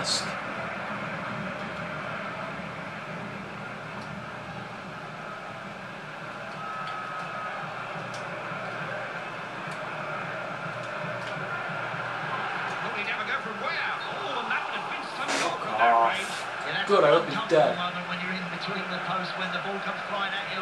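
A large crowd murmurs and cheers steadily, heard through a television speaker.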